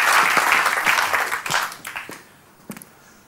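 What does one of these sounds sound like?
An audience claps and applauds.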